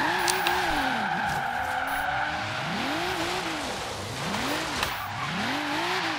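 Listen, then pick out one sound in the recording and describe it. Tyres screech in a long skid.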